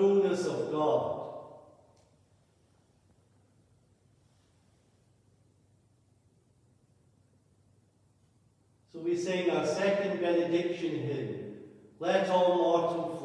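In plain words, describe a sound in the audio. A man chants a prayer, echoing in a large hall.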